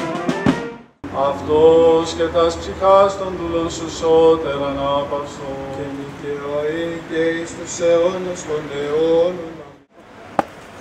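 An elderly man chants in a deep voice through a microphone, outdoors.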